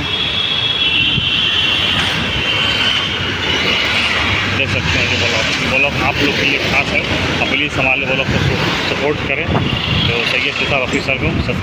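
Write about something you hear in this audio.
Motorbikes ride past.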